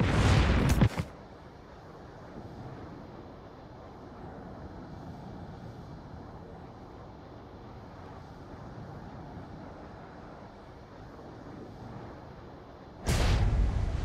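A propeller plane drones steadily.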